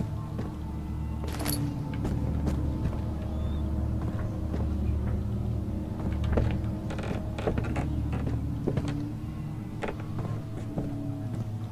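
Footsteps thud on a creaky wooden floor.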